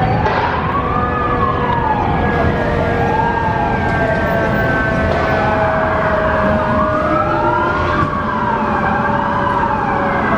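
A fire engine horn blares in long steady blasts.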